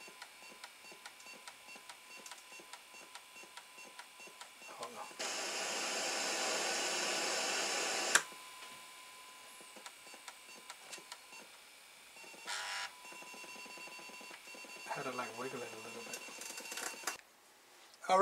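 A disk drive motor whirs with a faint steady hum.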